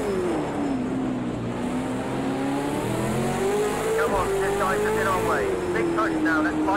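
A racing car engine revs high and shifts pitch as the car speeds along.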